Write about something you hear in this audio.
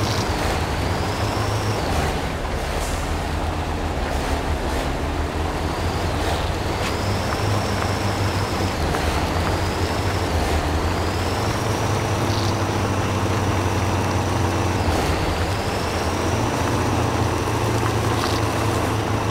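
A truck's engine whines and rises in pitch as it strains forward.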